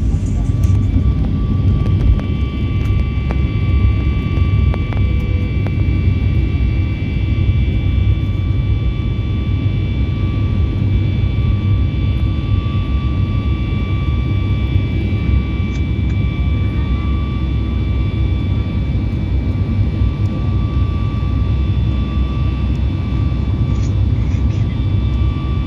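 A high, steady whine from the engines runs above the roar.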